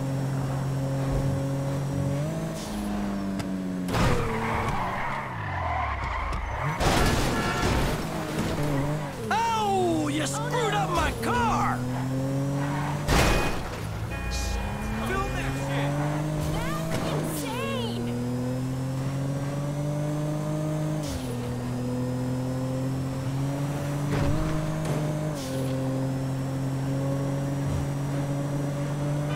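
A car engine revs and shifts gears throughout.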